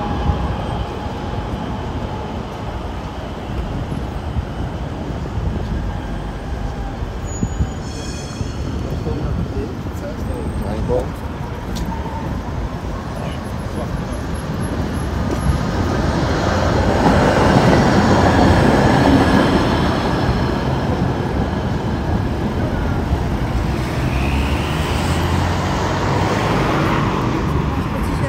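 Footsteps of a group walk on pavement outdoors.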